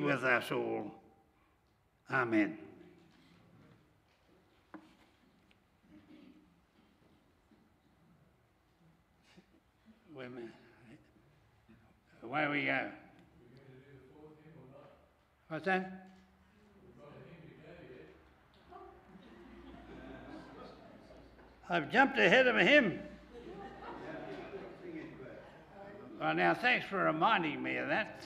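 An elderly man speaks slowly and calmly into a microphone in an echoing hall.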